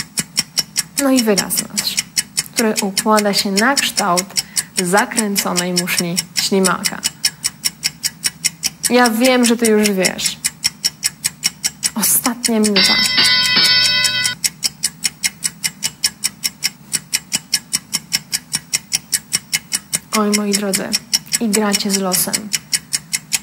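A young woman speaks with animation into a microphone, in short bursts.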